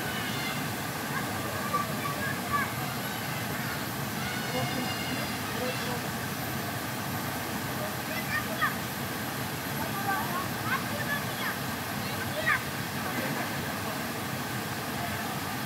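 Children call out and shriek playfully outdoors.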